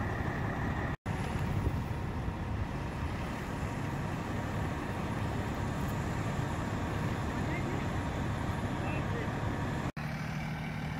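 An SUV drives off along a road.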